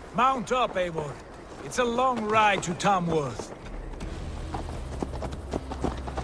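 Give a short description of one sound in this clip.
Horse hooves clop on a dirt path.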